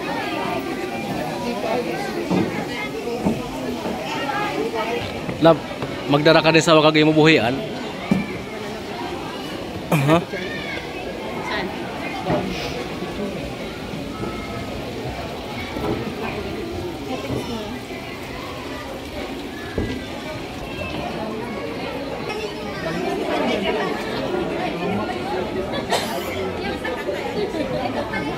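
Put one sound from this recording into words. A crowd of people chatters and talks nearby.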